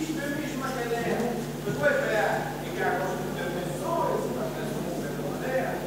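Men in an audience talk among themselves nearby.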